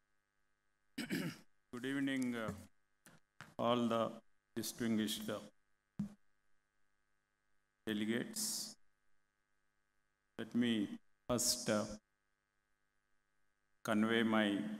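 A man speaks calmly into a microphone over a loudspeaker, with pauses, in a large hall.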